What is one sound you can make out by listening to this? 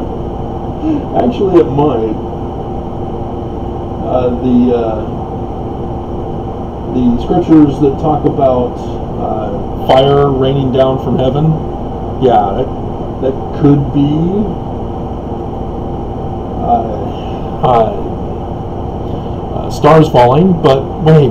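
A middle-aged man talks casually close to a microphone, in short bursts with pauses.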